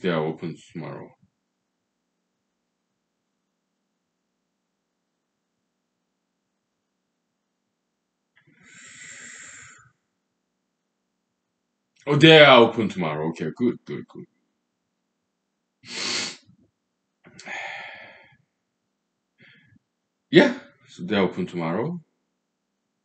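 A middle-aged man speaks calmly in short bursts nearby.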